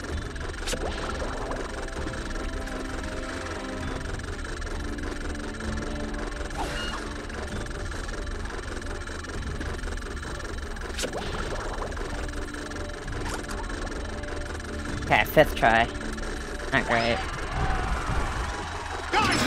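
Upbeat electronic game music plays steadily.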